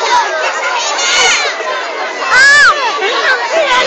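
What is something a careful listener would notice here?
A child shrieks loudly nearby.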